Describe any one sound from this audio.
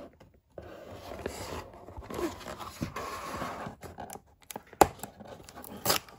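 Tape crackles as fingers peel it from cardboard.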